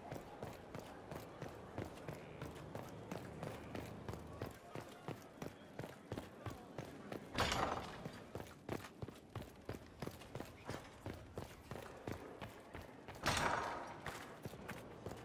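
Quick footsteps run on stone, steady and fast.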